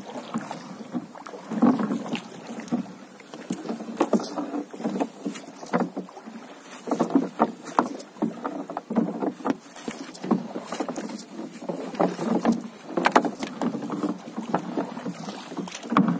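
Knocks and bumps sound on a small boat's hull.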